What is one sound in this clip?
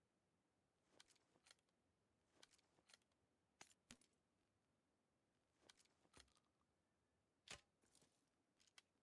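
Items click and rustle as gear is picked up and sorted.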